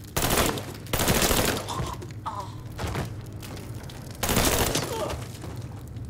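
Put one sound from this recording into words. A rifle fires loud bursts of shots.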